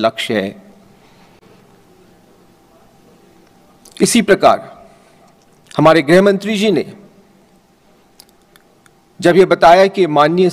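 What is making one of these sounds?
A middle-aged man speaks slowly and formally into a microphone, with long pauses.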